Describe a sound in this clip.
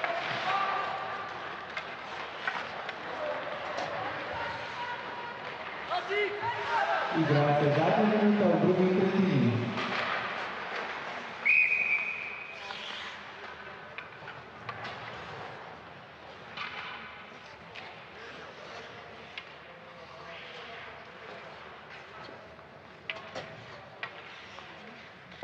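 Skates scrape across the ice in an echoing arena.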